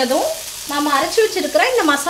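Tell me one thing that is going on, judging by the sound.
A thick paste plops into a pan.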